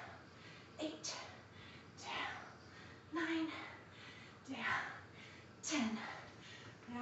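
Bare feet thud on an exercise mat.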